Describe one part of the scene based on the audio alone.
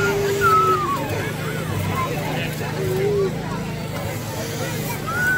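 A crowd of adults and children chatters outdoors.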